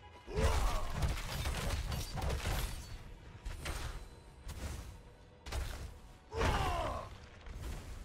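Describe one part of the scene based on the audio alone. Weapons slash and strike in a fierce fight, in bursts.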